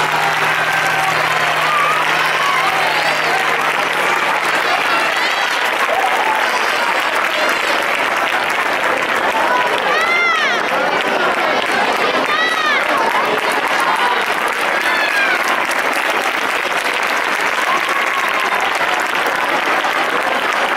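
A large crowd of children chatters and shouts loudly outdoors.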